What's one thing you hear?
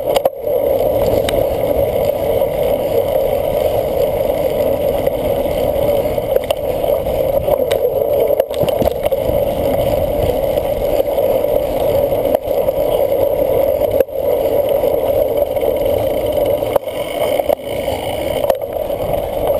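A cyclocross bicycle rattles over bumps.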